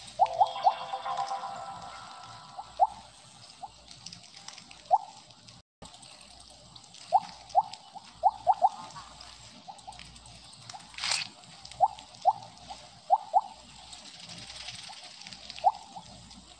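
Short bright game chirps pop again and again.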